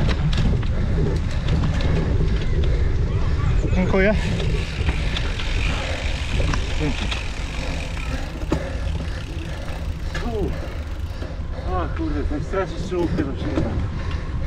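Bicycle tyres roll and crunch over grass and dirt.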